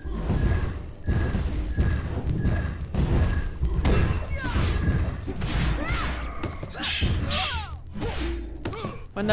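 Swords clash and slash in a game fight.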